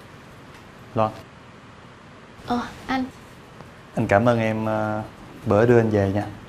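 A young man speaks casually nearby.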